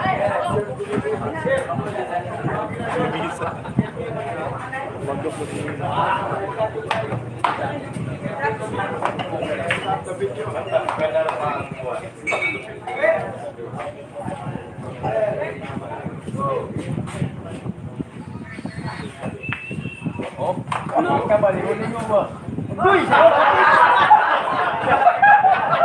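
A crowd of men and women chatters nearby.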